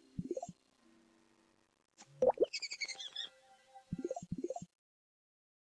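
Rising whooshing game effects play as a bubble is launched.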